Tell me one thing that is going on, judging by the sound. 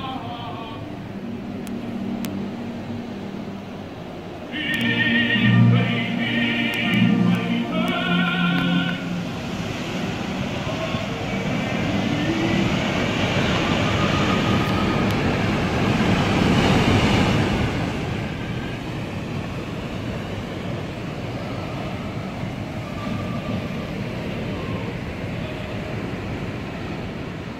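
Sea waves wash and break over rocks close by.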